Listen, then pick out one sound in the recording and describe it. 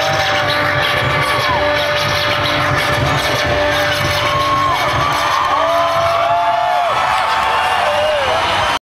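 Electric guitar notes bend and wail over the band.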